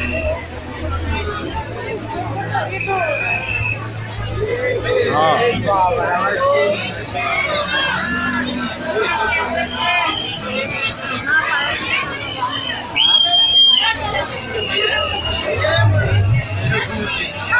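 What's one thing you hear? A crowd of people chatters loudly nearby.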